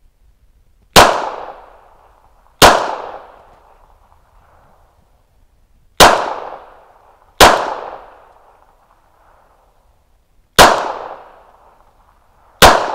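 A pistol fires single loud shots outdoors, each echoing away among the trees.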